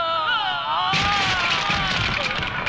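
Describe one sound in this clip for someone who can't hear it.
A wooden chair crashes and breaks.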